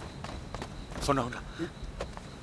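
A man calls out briefly.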